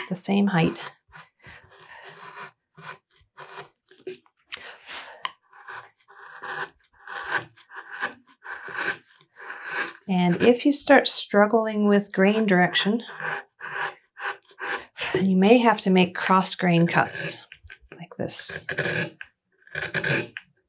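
A chisel shaves and scrapes through wood in short strokes.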